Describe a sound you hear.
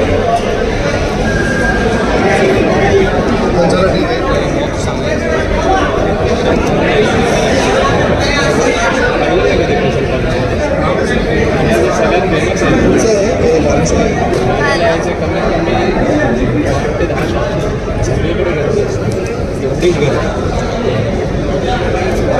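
A crowd of men and women chatter and call out loudly close by.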